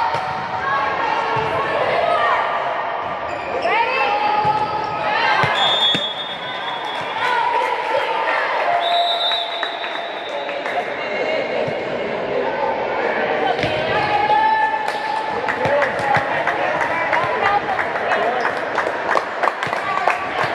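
Girls shout and call out to each other across a large echoing hall.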